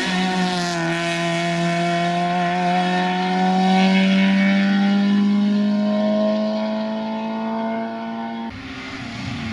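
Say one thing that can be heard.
A rally car engine roars at high revs as the car speeds away into the distance.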